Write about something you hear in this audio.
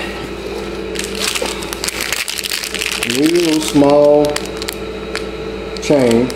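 A plastic bag crinkles and rustles in a hand.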